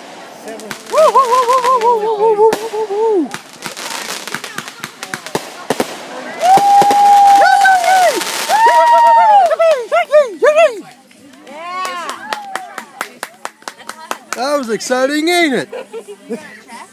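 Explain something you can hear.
Whistling fireworks shriek, rising and falling in pitch.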